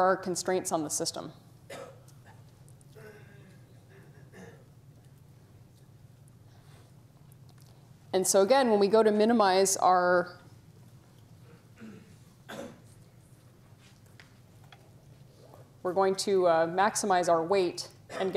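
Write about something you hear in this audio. A woman lectures calmly through a microphone, with pauses between phrases.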